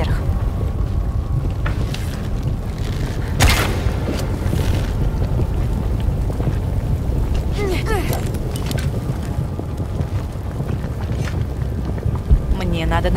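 A deep fiery rumble roars steadily throughout.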